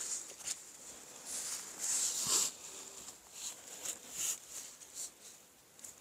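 A fishing reel whirs and clicks as line is wound in.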